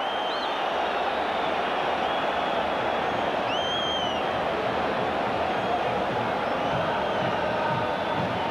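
Fans in a large crowd whistle shrilly now and then.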